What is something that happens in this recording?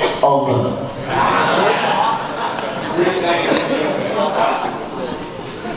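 A crowd laughs and cheers.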